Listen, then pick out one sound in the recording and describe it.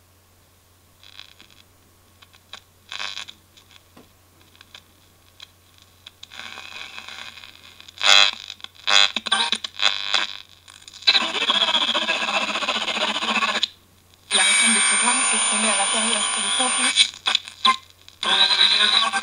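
A small radio loudspeaker crackles with hiss and snatches of broadcast sound that come and go in bursts.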